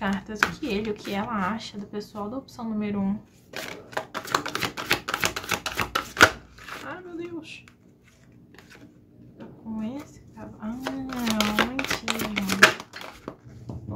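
Cards are shuffled and riffled by hand, with quick papery flutters.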